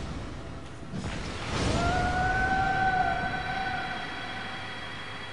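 A fireball bursts with a roaring whoosh.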